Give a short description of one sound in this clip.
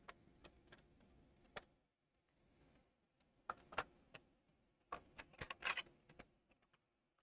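Plastic parts click and tap as hands handle a handheld console.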